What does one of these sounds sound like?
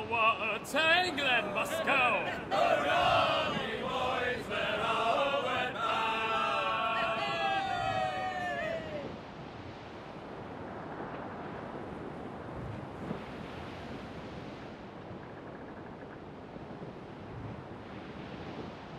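Waves splash and rush around a sailing ship's hull.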